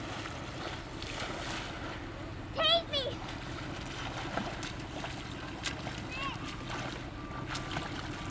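Water splashes around a swimming child.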